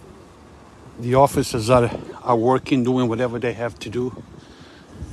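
A man speaks loudly close by.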